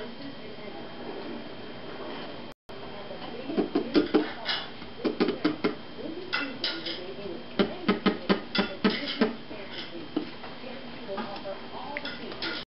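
A wooden stick knocks and scrapes inside a glass bottle.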